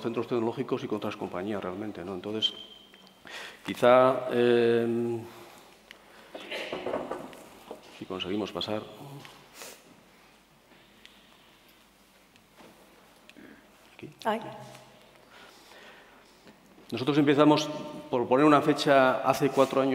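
A middle-aged man speaks through a headset microphone into a large hall, pausing now and then.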